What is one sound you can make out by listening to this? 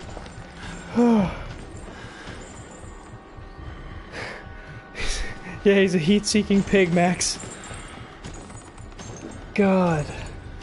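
A young man yelps loudly close to a microphone.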